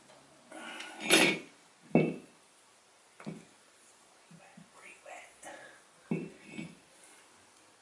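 Metal parts clank and scrape together.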